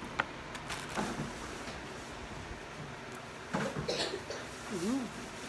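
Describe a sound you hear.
Paper crinkles and rustles as a cardboard box is handled.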